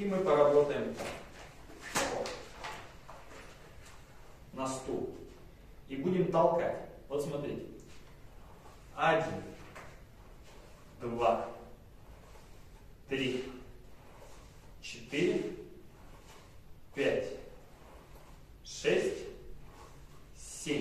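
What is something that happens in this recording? A young man speaks short phrases calmly at a steady pace, close by.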